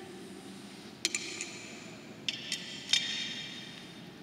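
Small objects clink and knock as they are handled.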